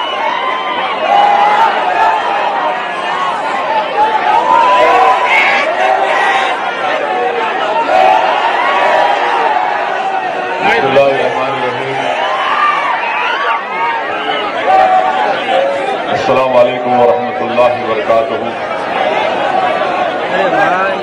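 A middle-aged man speaks forcefully into a microphone, heard through loudspeakers.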